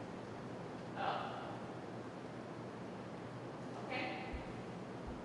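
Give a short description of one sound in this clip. A young woman speaks briefly in short phrases.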